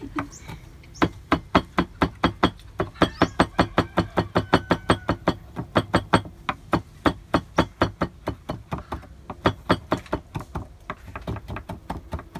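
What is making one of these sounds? A knife chops rapidly and steadily on a wooden board.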